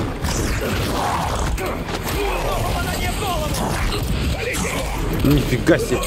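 Furniture crashes and breaks.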